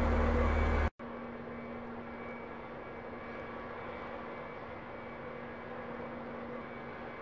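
Jet engines hum steadily in the distance.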